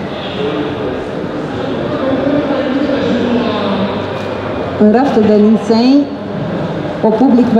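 A middle-aged woman speaks through a microphone into a room that echoes, calmly and then with growing animation.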